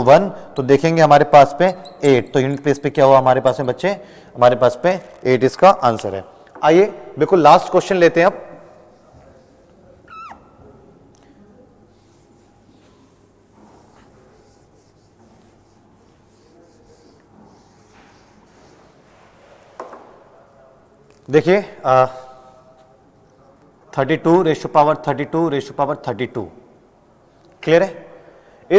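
A man lectures with animation, close to a microphone.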